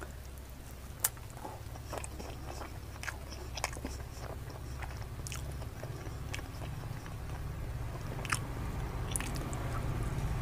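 A man chews and smacks his lips loudly, close up.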